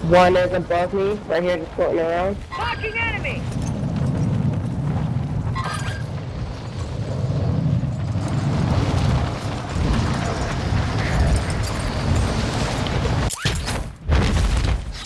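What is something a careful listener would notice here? Wind rushes loudly past a falling parachutist.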